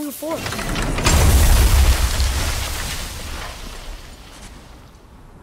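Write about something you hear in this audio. A heavy crash booms and rumbles deeply, then slowly fades.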